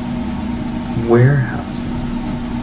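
A man speaks a few words in a quiet room, heard from a distance.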